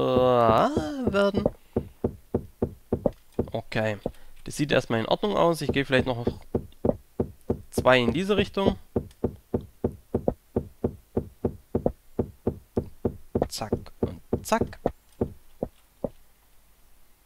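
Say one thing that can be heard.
A pickaxe chips at stone in quick, steady knocks.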